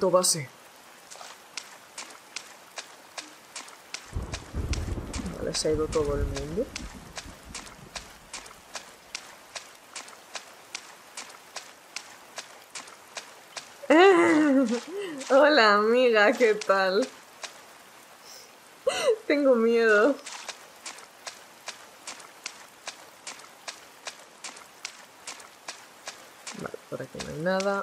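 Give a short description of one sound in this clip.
Footsteps patter quickly and evenly.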